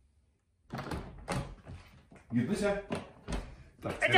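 A glass door slides open.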